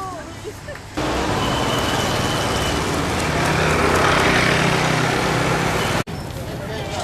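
A motorbike engine runs nearby on a busy street.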